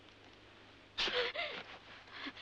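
A young woman speaks breathlessly up close.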